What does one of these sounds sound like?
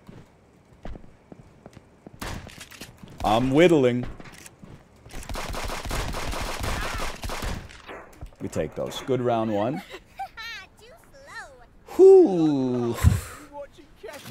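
A shotgun fires in loud blasts.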